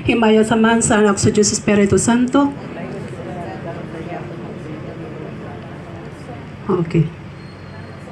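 A young woman speaks loudly into a microphone over a loudspeaker outdoors.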